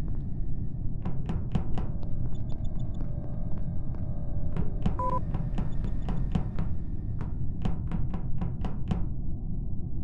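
Quick light footsteps patter across a hard floor.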